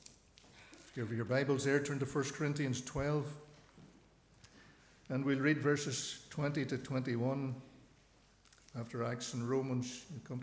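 A man speaks calmly and clearly into a microphone in an echoing hall.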